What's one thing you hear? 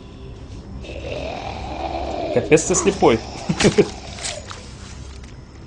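A zombie groans and snarls up close.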